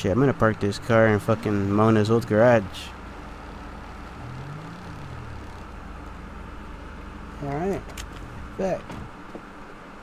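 A car engine rumbles at low speed.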